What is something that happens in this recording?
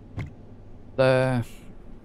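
A short electronic game tone sounds.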